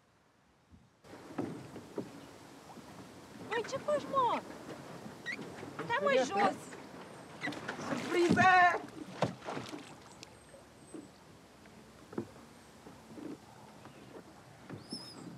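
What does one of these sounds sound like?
Water laps against a pedal boat.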